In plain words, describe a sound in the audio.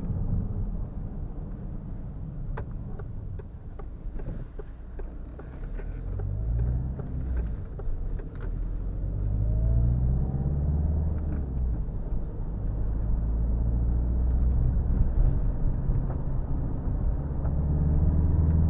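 A car engine hums low inside the cabin and rises as the car speeds up.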